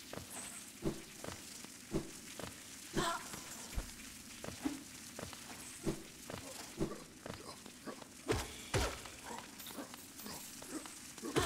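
Soft thumps and swishes of a game character dashing and landing sound again and again.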